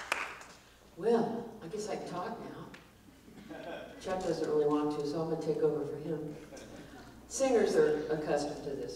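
A woman speaks calmly into a microphone through loudspeakers in an echoing hall.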